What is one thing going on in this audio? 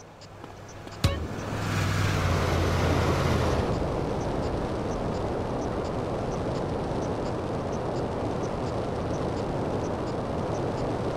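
A jetpack engine roars steadily.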